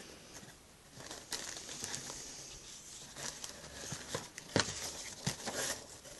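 Paper rustles and crinkles as a hand handles it.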